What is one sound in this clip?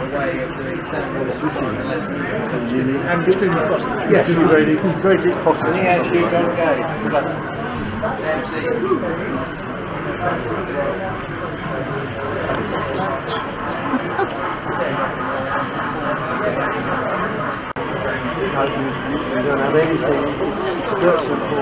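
A crowd of adults chatters nearby in a busy indoor hall.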